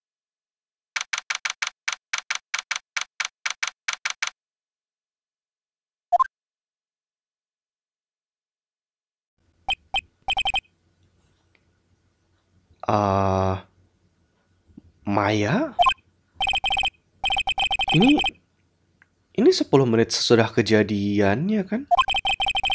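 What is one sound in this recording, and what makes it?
Rapid electronic blips tick out in quick bursts.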